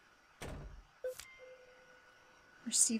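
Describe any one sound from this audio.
A short game chime sounds.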